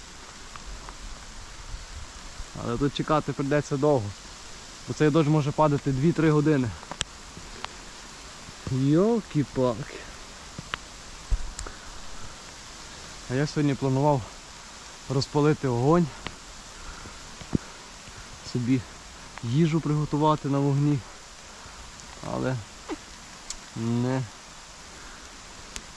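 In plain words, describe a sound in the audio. Rain falls steadily on trees.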